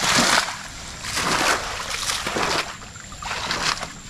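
Water splashes as a fishing net is hauled through shallow water.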